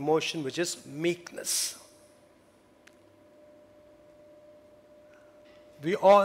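A middle-aged man speaks calmly into a headset microphone, with pauses.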